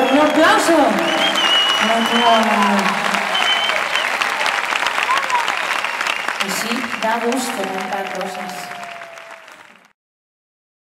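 A large audience claps loudly in an echoing hall, then fades away.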